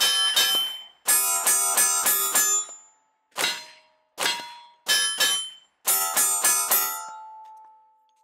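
A pistol fires rapid shots outdoors, each crack ringing out.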